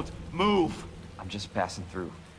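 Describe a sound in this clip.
A young man speaks calmly and quietly up close.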